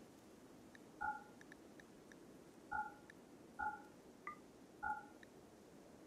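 Short soft electronic blips sound as game menu options are toggled.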